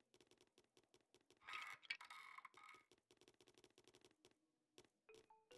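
Light footsteps patter quickly on a hard floor.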